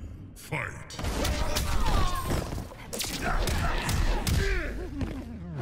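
Heavy blows land with loud thuds and cracks.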